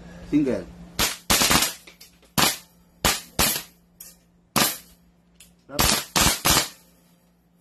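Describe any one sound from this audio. An airsoft rifle fires sharp shots in quick bursts.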